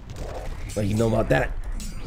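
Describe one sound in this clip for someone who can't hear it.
A blade strikes in a fight.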